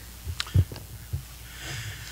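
Paper rustles.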